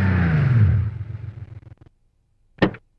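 A car engine runs and winds down to a stop.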